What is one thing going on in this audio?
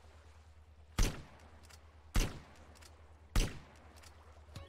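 Sniper rifle shots crack out one at a time, at even gaps.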